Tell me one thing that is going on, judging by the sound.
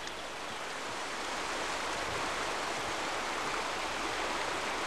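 Water rushes and churns loudly close by.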